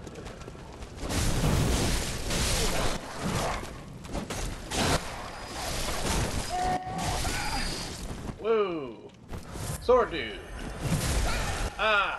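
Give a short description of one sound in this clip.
Blades slash and thud into bodies in a fierce fight.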